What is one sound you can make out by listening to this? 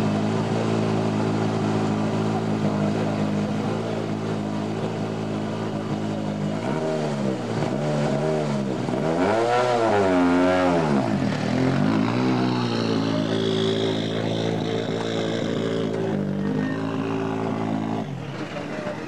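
A rally car engine idles with a deep, steady hum.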